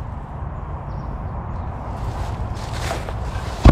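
A heavy tire scrapes and thumps as it is pulled from a car's cargo area.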